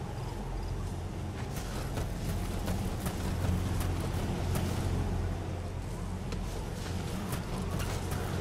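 Boots scrape and shuffle on rock.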